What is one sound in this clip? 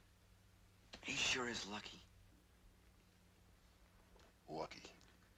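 A second man answers softly.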